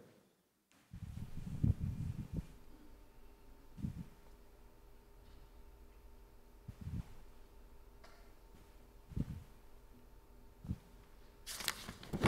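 Footsteps tap slowly across a hard floor in a large echoing hall.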